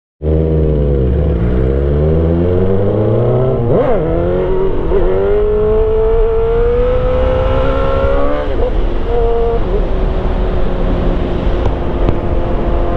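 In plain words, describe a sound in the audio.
A motorcycle engine revs hard, climbing in pitch and dropping with each gear change.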